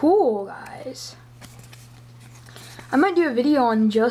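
A stiff card rustles softly as it is turned over in hands.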